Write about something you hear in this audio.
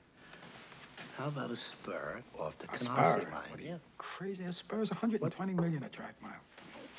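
A middle-aged man speaks quietly and intently, close by.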